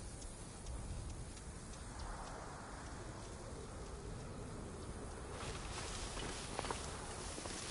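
Leafy plants rustle as someone pushes through them.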